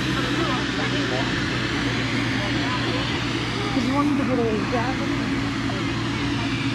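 A crowd of adults chats and murmurs nearby outdoors.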